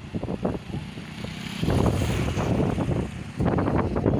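A motorcycle engine hums as it rides past close by.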